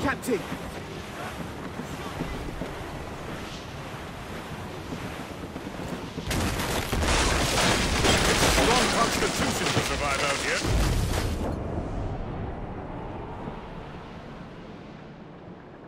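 Wind blows through a ship's sails.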